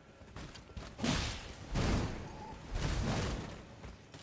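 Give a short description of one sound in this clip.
Blades clash and slash in sharp bursts.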